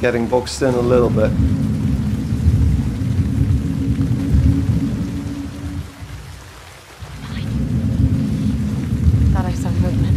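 Tall grass rustles as someone crawls slowly through it.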